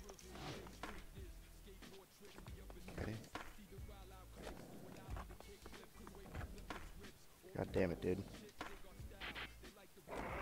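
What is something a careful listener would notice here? Skateboard wheels roll and clatter on concrete.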